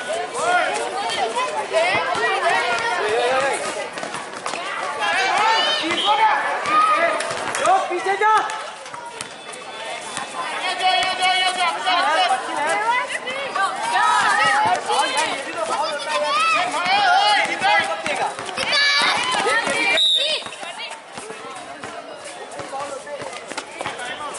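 Young boys shout and call out across an open court.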